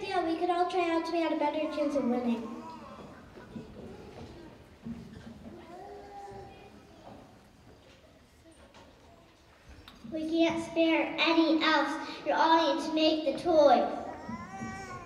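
A young girl speaks into a microphone in a large hall.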